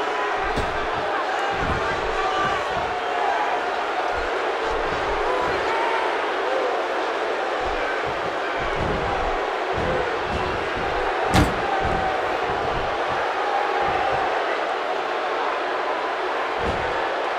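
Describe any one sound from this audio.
Heavy thuds and slams sound as wrestlers hit each other and the mat.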